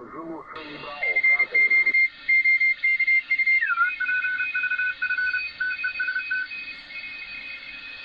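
Whistling tones shift and jump in pitch as a radio dial is turned.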